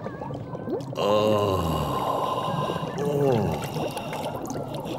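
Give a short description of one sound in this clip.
A man chuckles with delight.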